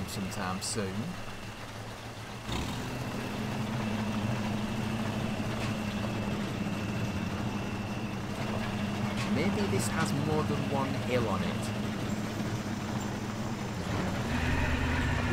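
A truck engine rumbles steadily as it drives slowly over rough ground.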